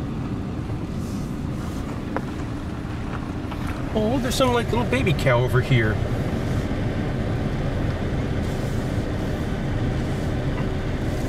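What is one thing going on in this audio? A car engine hums low and steady, heard from inside the car.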